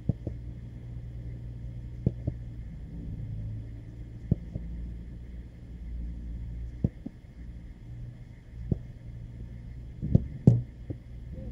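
A football is struck with sharp thumps now and then.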